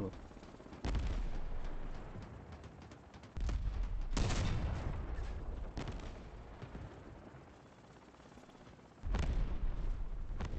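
Heavy cannon shots boom and rumble.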